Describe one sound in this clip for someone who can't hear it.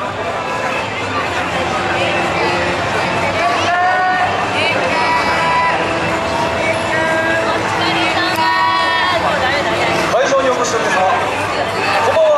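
Dancers shout calls in chorus.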